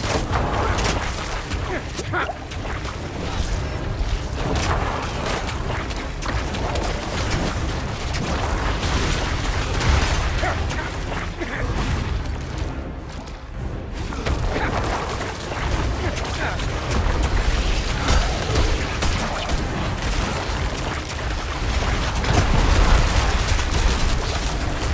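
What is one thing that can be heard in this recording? Game spells and weapons crash and blast in rapid bursts during a fight.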